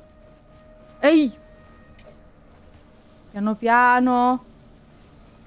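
A young woman exclaims loudly into a microphone.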